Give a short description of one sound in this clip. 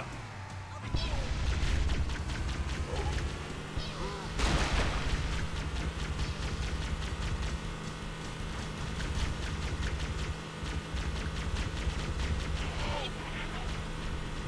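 Gunfire crackles in short bursts.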